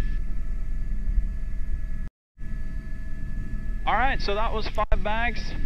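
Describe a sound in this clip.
A helicopter's engine and rotor drone steadily with a low rumble and a thin whine.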